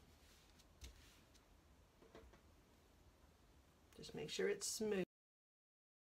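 Hands rub and smooth fabric with a soft rustle.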